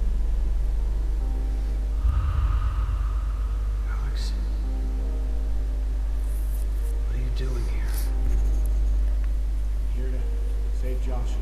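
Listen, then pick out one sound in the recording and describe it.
A young man speaks tensely.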